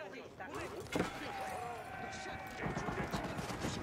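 Weapons clash and explosions boom in a game battle.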